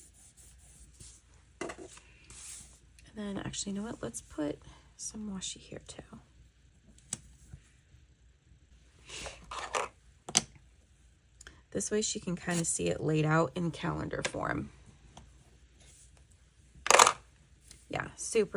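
Paper pages rustle and slide as hands handle them.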